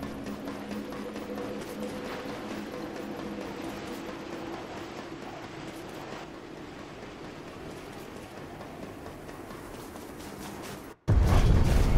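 Footsteps crunch on snow and stone.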